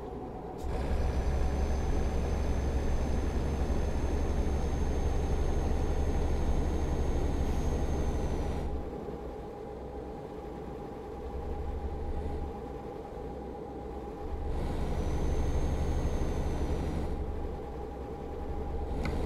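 A truck's diesel engine hums steadily, swelling and easing at times.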